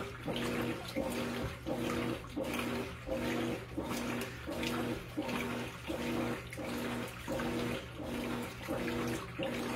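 A washing machine agitator churns back and forth with a rhythmic whirring hum.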